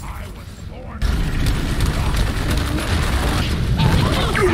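Rocks burst and crumble with loud blasts.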